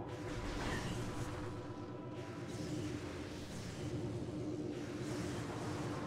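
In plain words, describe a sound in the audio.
A video game's music plays steadily.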